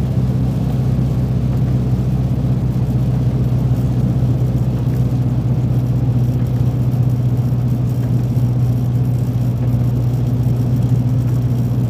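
A windscreen wiper swishes across the glass.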